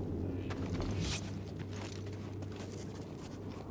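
Hands and boots scrape and knock on rock while climbing.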